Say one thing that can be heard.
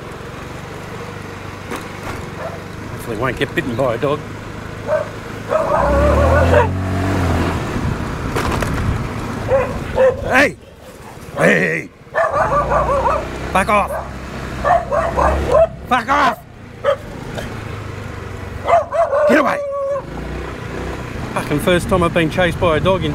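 A motorcycle engine hums at low speed.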